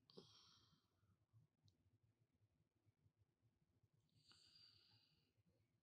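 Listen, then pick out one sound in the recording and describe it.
A young man speaks calmly into a microphone, close by.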